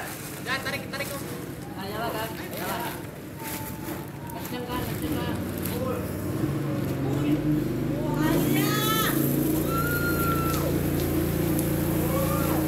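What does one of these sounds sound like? A group of young people shout and laugh at a distance outdoors.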